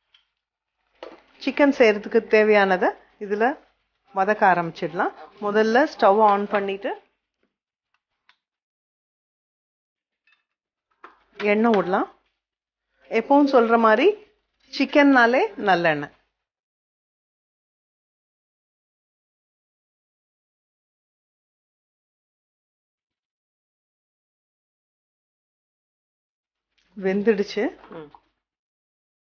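A middle-aged woman speaks calmly into a close microphone, in short bursts with pauses.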